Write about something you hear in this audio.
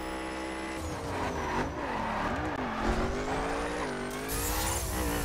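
Tyres screech as a race car drifts around a corner.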